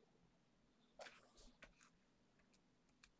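A computer mouse clicks a few times close by.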